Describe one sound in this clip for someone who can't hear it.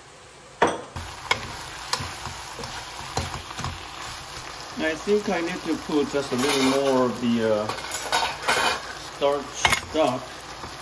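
Food sizzles in a pan.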